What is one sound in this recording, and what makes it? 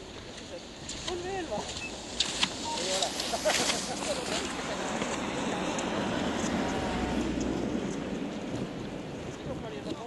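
Skis scrape and swish over snow as a skier passes close by.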